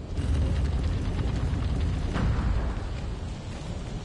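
Torch flames crackle and roar softly.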